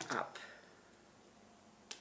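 Scissors snip.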